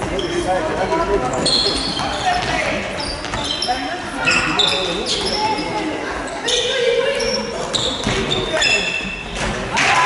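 A ball thuds as it bounces on the floor.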